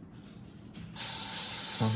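Water sprays with a steady hiss.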